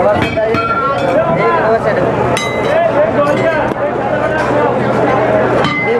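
Water sizzles and hisses on a hot griddle.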